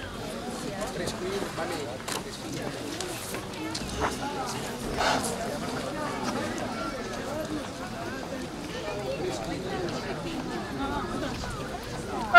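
A brass band plays a lively tune outdoors.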